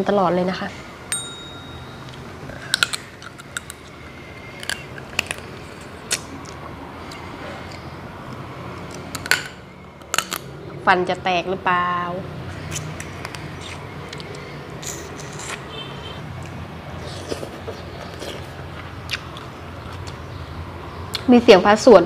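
Food crunches and smacks as a person chews close to a microphone.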